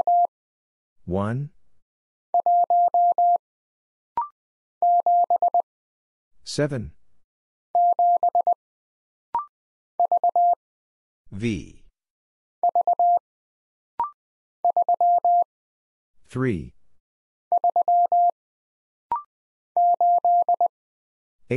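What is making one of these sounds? A telegraph key beeps out short bursts of Morse code in a steady high tone.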